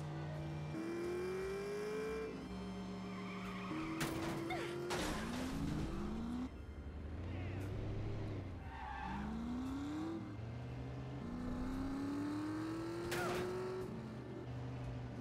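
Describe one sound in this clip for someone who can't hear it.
A racing car engine roars and climbs in pitch through repeated gear shifts.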